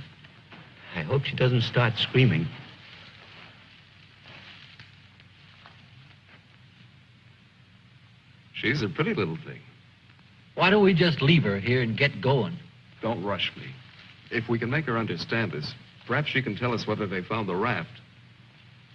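A man speaks firmly close by.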